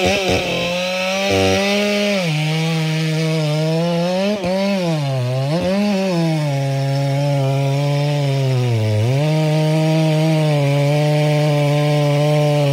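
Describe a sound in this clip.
A large ported chainsaw cuts through a big log, its engine bogging and recovering under load.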